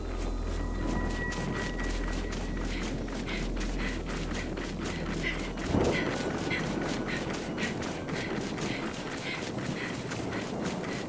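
Boots crunch quickly through snow.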